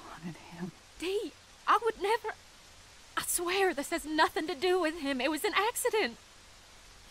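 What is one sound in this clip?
A young woman speaks pleadingly and tearfully, close by.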